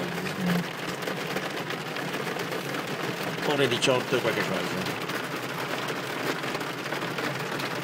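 Water gurgles and bubbles underwater, muffled and steady.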